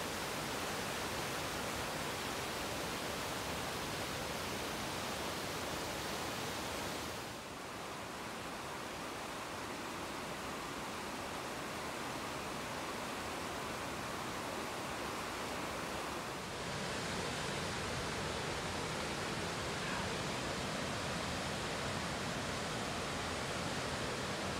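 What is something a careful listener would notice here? Rushing water roars steadily over rapids and falls.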